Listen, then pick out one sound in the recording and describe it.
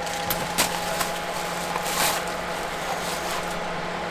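A plastic bag crinkles.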